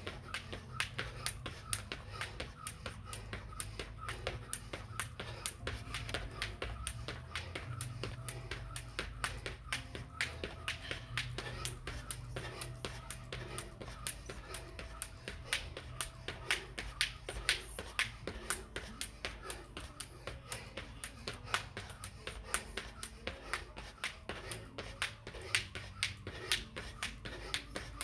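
Sneakers land softly on a mat with each jump.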